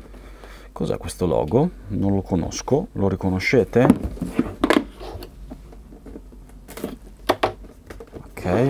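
Hands handle and shift a cardboard box on a table.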